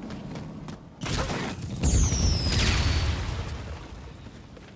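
A gun fires with a loud, ringing blast.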